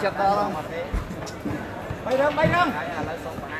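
A ball thumps on a mat.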